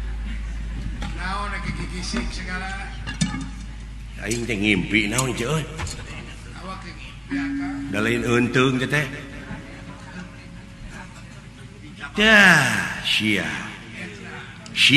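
A man speaks animatedly through a microphone.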